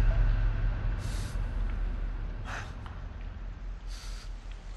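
A man breathes heavily in short, ragged gasps.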